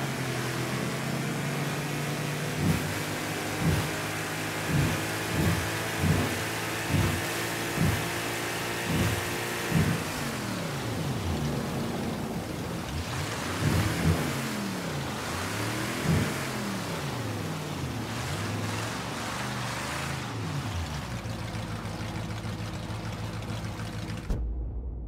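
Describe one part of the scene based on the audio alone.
A motorboat engine drones steadily.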